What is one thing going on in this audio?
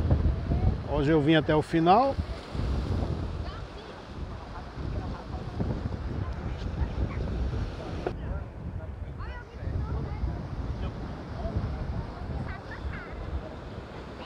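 Waves wash against rocks.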